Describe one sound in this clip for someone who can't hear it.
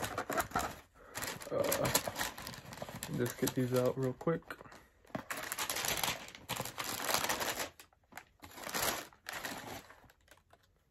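Paper rustles and crinkles as it is unfolded.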